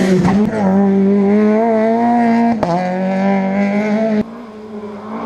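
A rally car engine roars at high revs and passes close by.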